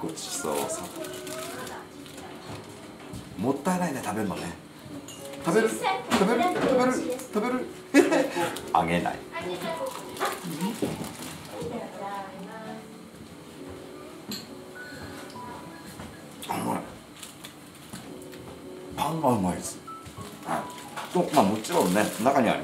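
A middle-aged man talks playfully and with animation close by.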